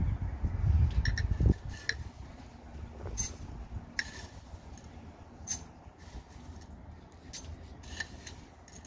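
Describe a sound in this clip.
A spoon clinks and scrapes against a glass jar.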